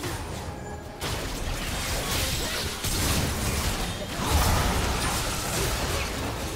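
Magic blasts burst with loud impacts.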